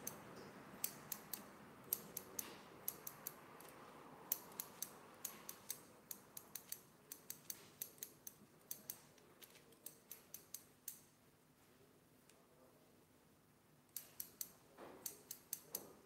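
Scissors snip through a beard with quick, crisp clicks.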